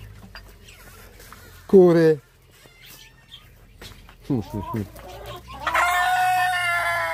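Hens cluck softly.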